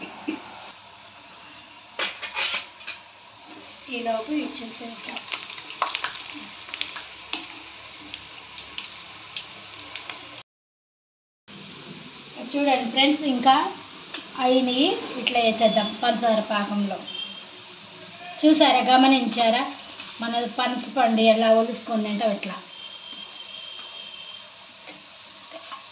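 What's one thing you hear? Oil sizzles and crackles loudly in a pan.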